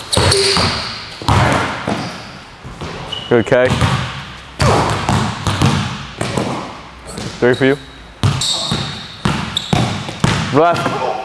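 A basketball bounces on a wooden court in an echoing hall.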